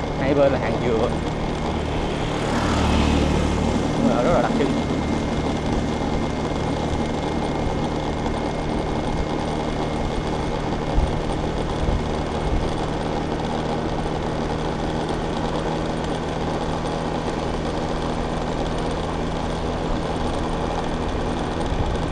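A scooter engine hums steadily while riding.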